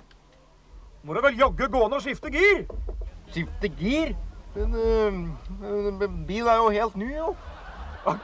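A man groans loudly.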